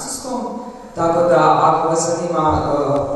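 A man speaks calmly through a microphone in a large, echoing hall.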